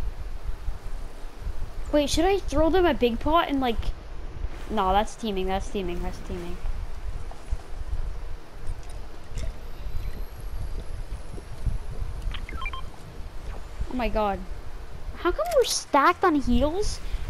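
Water splashes steadily as someone wades through it.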